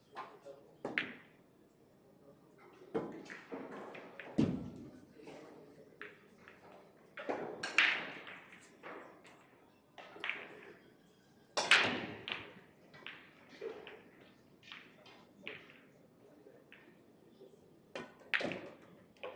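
Pool balls click together.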